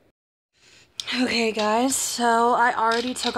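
A young woman speaks close to a phone microphone with animation.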